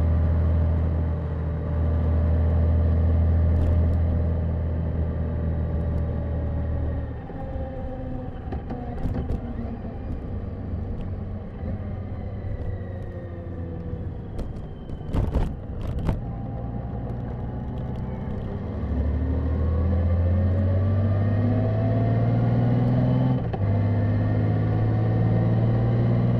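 A motorcycle engine hums steadily, dropping in pitch as the rider slows and rising again as the rider speeds up.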